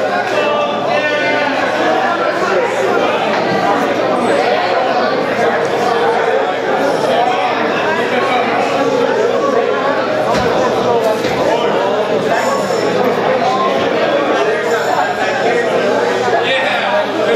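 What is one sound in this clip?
A rock band plays loud distorted electric guitars on a small stage.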